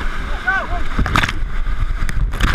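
Water splashes hard against a raft.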